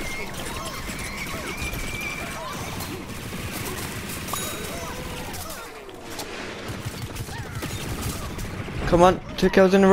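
Rapid shots pop and burst in quick bursts.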